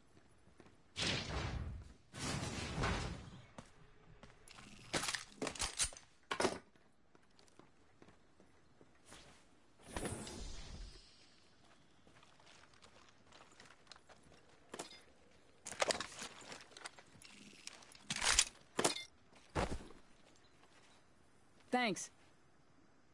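Game weapons and gear clatter in short bursts as a game character handles and picks up equipment.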